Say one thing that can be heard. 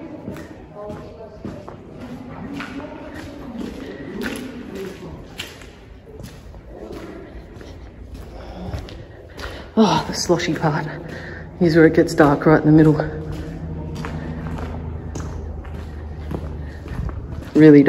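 Footsteps crunch on gravel in an echoing tunnel.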